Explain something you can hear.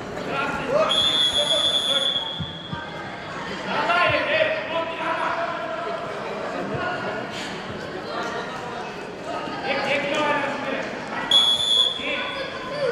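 Spectators shout and call out in an echoing hall.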